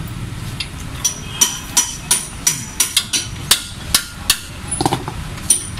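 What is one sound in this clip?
A metal hammer strikes a wheel hub in quick, ringing blows.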